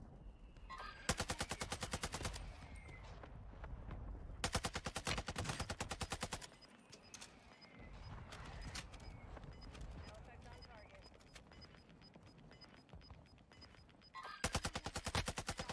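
An assault rifle fires rapid bursts.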